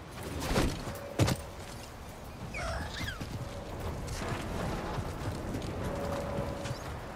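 Footsteps scuff over rock.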